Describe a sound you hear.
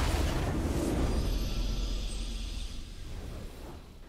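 A triumphant victory fanfare plays.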